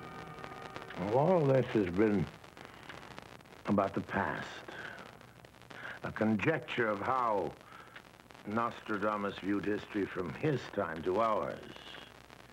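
An elderly man speaks slowly and dramatically, close by.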